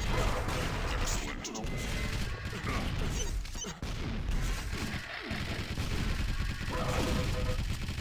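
Rockets blast and boom in a fast action game.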